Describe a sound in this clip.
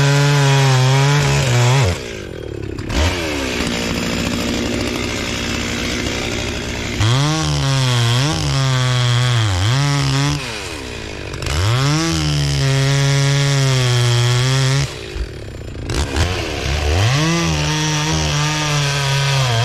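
A chainsaw engine revs up and down loudly, then idles.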